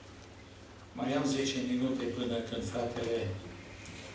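An elderly man speaks calmly into a microphone in an echoing hall.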